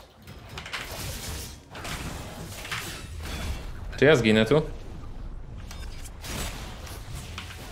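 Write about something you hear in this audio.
Video game combat effects clash and whoosh.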